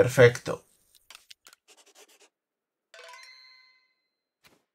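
Short electronic menu chimes sound.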